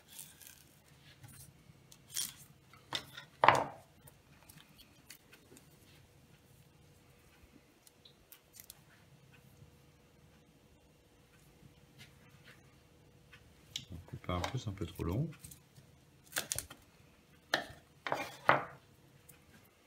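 A knife cuts through crisp vegetable on a wooden board.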